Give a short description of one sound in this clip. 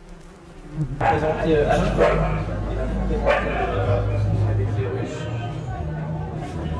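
A young man asks questions into a handheld microphone.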